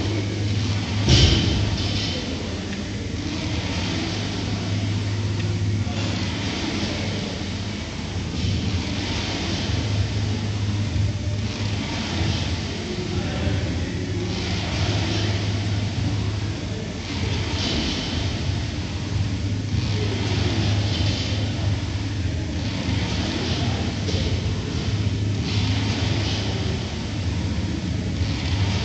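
A rowing machine's seat slides back and forth on its rail.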